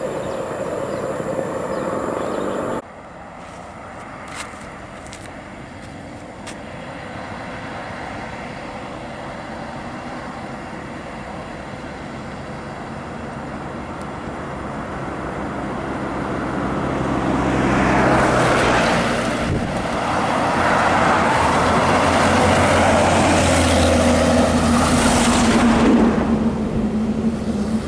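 Traffic hums along a road outdoors.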